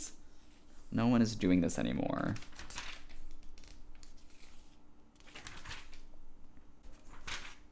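Glossy catalogue pages rustle and turn.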